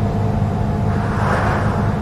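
A car passes by going the other way.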